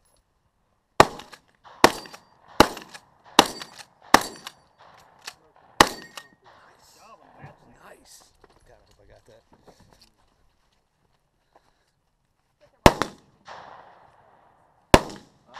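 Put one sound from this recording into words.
Sharp gunshots crack outdoors, one after another, each ringing out across open ground.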